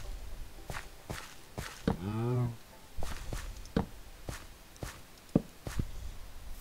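Footsteps thud on grass at a steady walking pace.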